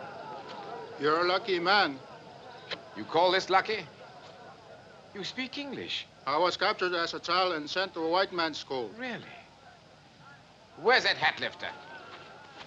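A man speaks with animation, close by.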